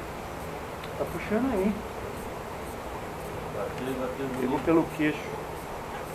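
A man talks nearby, calmly, outdoors.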